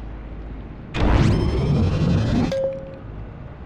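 A loud burst of building noise rumbles briefly.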